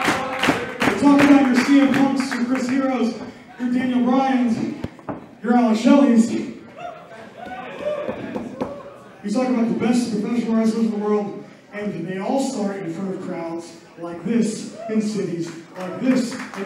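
A man speaks loudly into a microphone, echoing through a hall.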